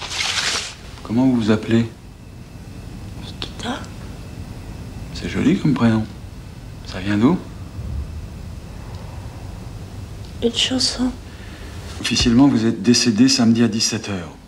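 A man speaks quietly and earnestly close by.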